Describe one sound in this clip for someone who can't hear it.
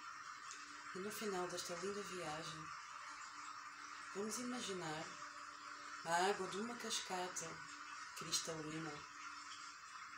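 A young woman chants slowly in a soft, melodic voice close by.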